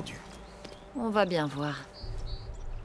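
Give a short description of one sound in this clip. A young woman answers briefly.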